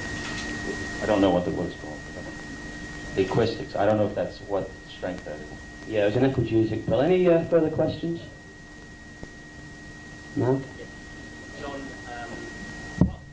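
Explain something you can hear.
A man speaks with animation into a microphone, heard through loudspeakers in a room.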